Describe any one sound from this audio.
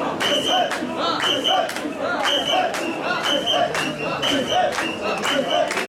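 A large crowd of men chants loudly in a steady rhythm outdoors.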